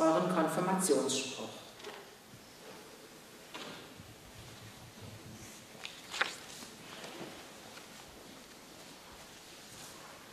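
A man speaks calmly nearby in an echoing hall.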